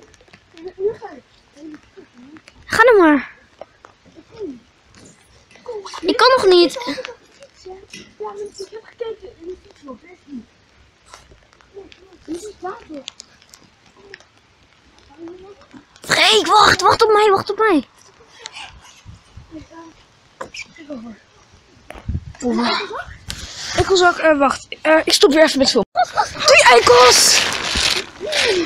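Young boys talk and shout with animation close by.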